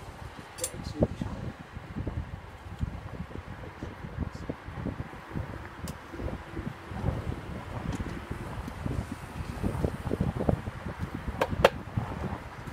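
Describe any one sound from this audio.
Wooden hive parts knock and scrape as they are lifted.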